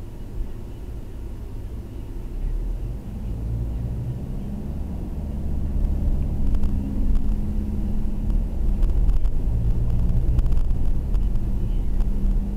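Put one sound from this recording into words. Tyres roll on the road.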